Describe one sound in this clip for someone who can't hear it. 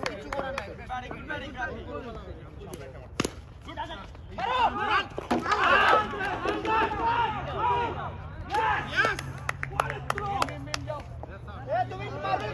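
A crowd of young men shouts and cheers outdoors.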